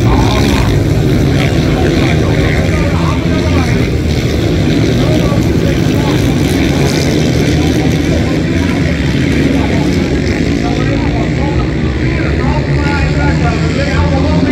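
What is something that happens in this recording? A crowd murmurs and cheers in the distance.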